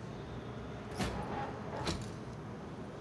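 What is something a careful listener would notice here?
A machine hatch clicks and slides open.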